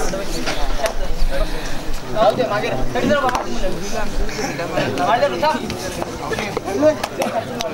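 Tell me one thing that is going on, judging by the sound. A crowd of spectators chatters and shouts outdoors.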